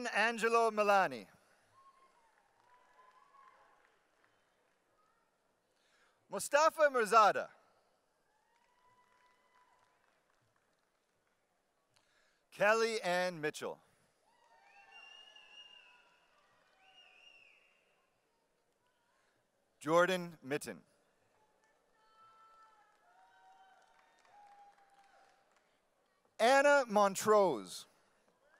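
A man reads out names into a microphone, heard through loudspeakers in a large hall.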